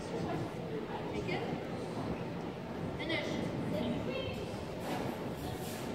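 A woman talks calmly at a distance in a large echoing hall.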